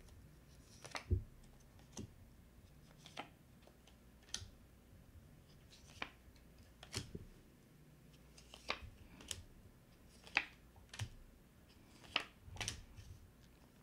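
Cards are laid down one by one with soft taps.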